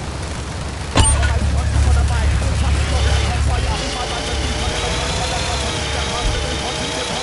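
A small toy car motor buzzes and whines.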